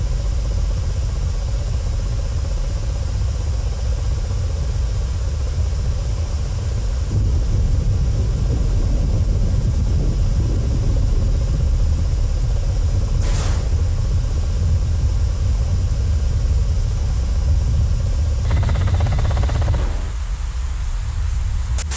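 A helicopter's engine and rotor drone steadily.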